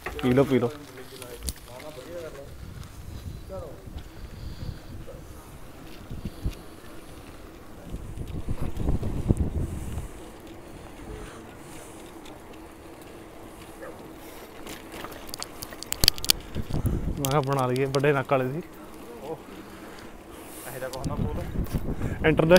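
Wind rushes against the microphone as a bicycle rides along.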